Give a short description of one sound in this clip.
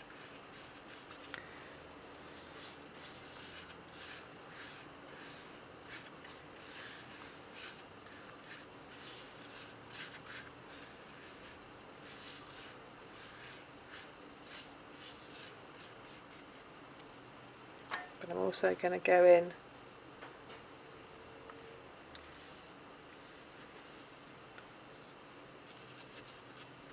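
A paintbrush softly dabs and swishes on wet paper.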